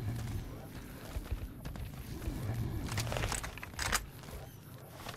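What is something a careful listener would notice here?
Large horned beasts grunt and bellow nearby.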